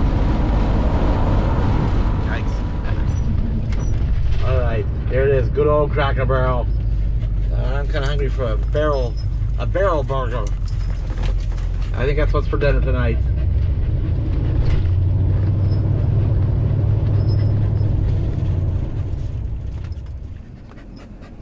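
A car engine hums steadily with road noise as the car drives.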